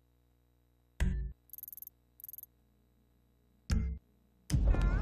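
Short electronic beeps click as a menu is browsed.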